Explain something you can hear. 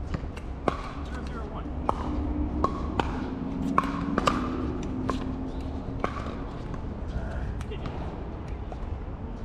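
Paddles pop sharply against a plastic ball, back and forth, outdoors.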